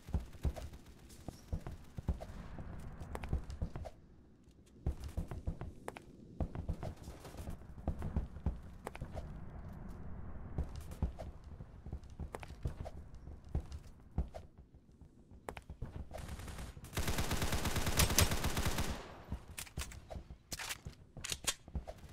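Footsteps thud quickly on hard floors and stairs.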